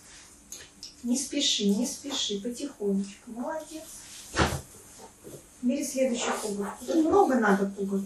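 A young child talks, close by.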